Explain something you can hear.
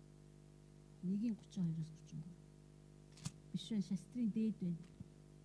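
A woman speaks haltingly in short bursts through a microphone.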